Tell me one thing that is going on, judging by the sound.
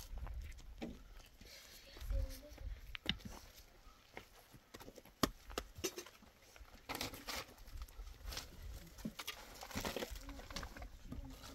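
Concrete blocks knock and scrape as they are set in place.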